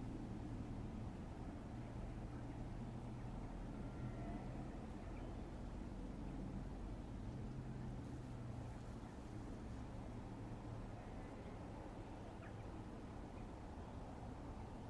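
Steel wheels rumble and clatter on the rails.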